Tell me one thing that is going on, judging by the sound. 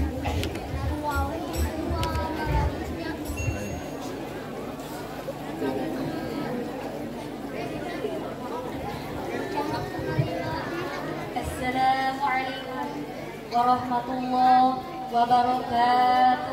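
A group of young women sing together through loudspeakers.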